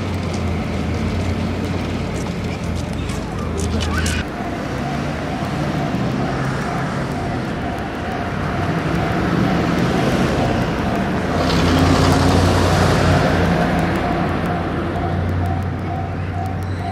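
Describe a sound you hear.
Traffic rumbles past outdoors.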